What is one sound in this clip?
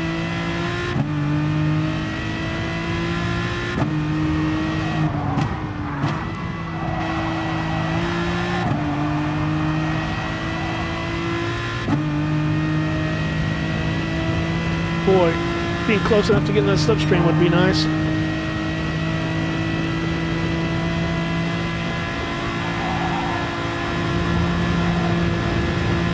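A race car engine roars steadily, dropping in pitch at each gear shift.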